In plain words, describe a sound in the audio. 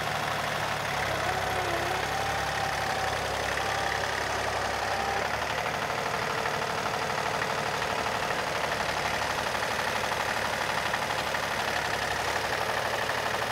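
A plough scrapes through heavy soil.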